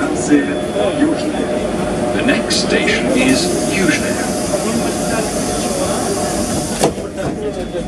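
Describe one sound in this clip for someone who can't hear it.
A subway train pulls away from a platform, rumbling.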